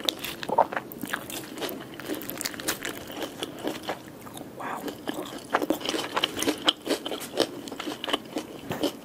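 Fish bones crackle and snap close to a microphone.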